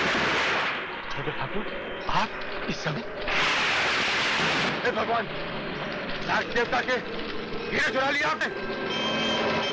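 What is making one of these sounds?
An elderly man shouts angrily, close by.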